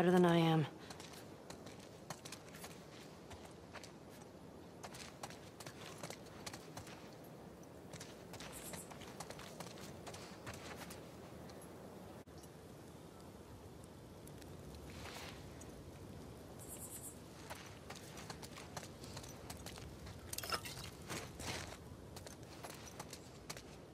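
Footsteps crunch softly on gritty concrete.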